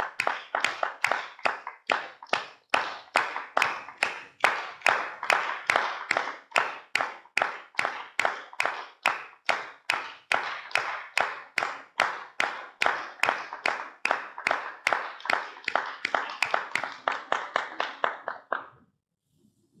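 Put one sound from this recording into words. A man and a woman clap their hands together in a steady rhythm.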